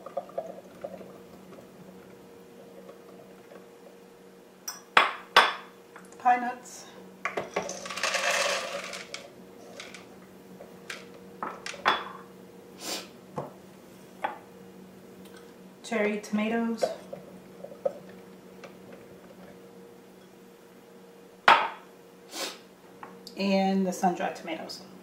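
Ingredients drop and tap into a plastic food processor bowl.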